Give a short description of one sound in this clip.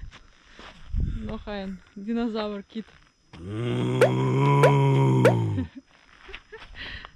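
A man talks with animation close by.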